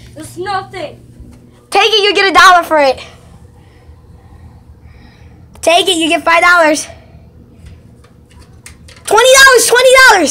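A young child shouts and squeals loudly close by.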